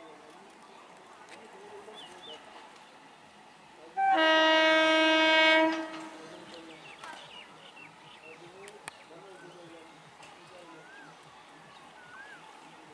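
A train rumbles closer along the tracks.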